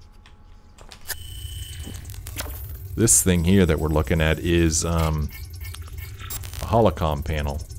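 A scanning device hums and bleeps electronically.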